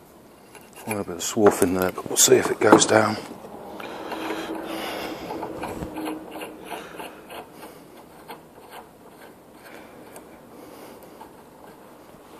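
A socket wrench ratchets with rapid clicks.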